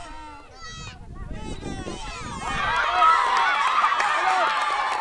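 A crowd of children and adults shout and cheer outdoors, growing louder.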